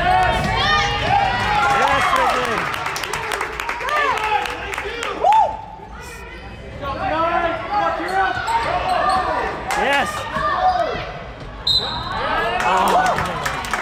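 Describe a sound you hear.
Sneakers squeak sharply on a hardwood court in a large echoing gym.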